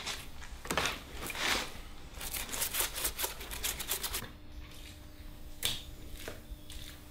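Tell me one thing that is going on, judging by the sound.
Plaster-covered objects clink and scrape as hands handle them.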